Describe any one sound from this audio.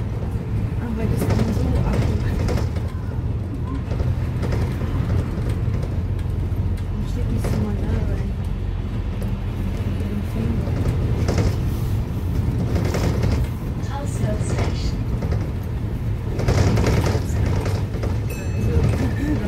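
A bus engine rumbles steadily while driving along a street.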